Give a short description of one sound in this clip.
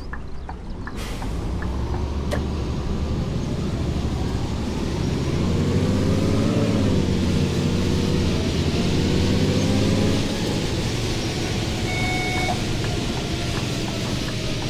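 A bus engine rumbles and rises in pitch as the bus pulls away.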